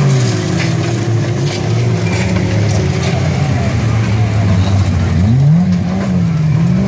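Tyres skid and scrape on dry dirt.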